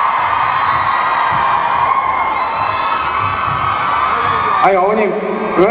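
A large crowd screams and cheers loudly.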